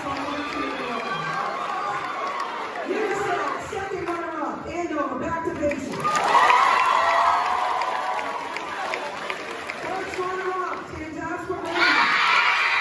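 A woman speaks through loudspeakers in a large echoing hall.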